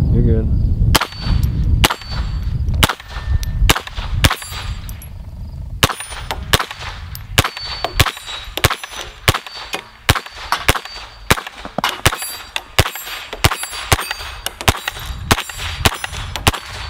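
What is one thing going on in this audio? A rifle fires shot after shot, each a sharp crack outdoors.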